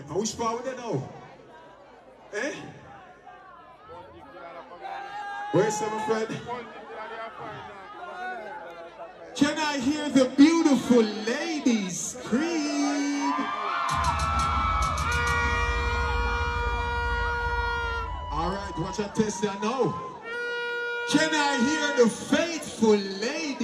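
A man sings and chants loudly through a microphone over a sound system.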